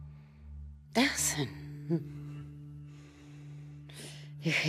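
An elderly woman laughs heartily.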